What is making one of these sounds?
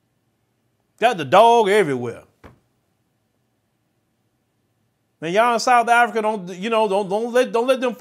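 A man speaks clearly and with animation into a close microphone.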